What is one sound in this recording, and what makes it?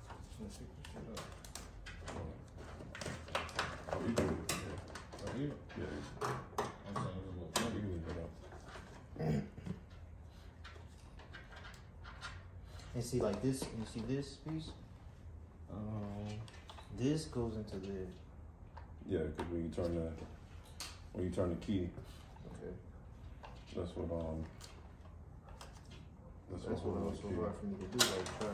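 Small metal parts and wire connectors click and rattle close by.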